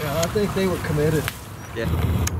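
Water splashes as a dog wades.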